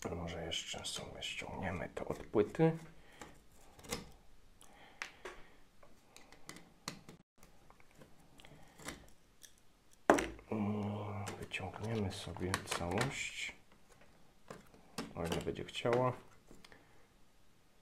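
A small circuit board clicks and rattles as hands handle it.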